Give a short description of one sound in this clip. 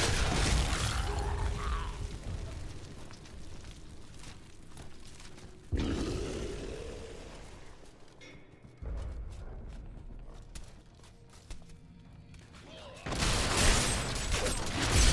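Fiery spell blasts roar and crackle in combat.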